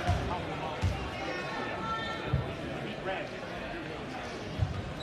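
A basketball thumps on a hardwood floor.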